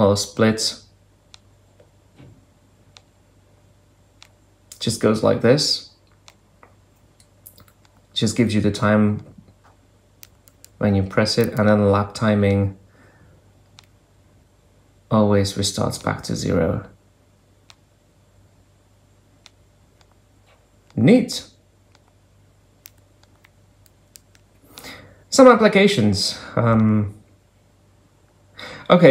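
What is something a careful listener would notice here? Buttons on a mobile phone click softly as they are pressed.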